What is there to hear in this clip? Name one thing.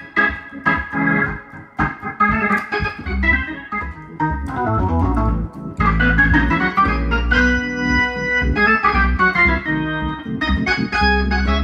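An organ plays lively chords up close.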